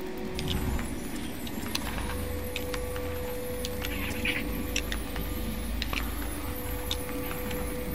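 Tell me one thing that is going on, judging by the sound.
A magical energy field hums and crackles.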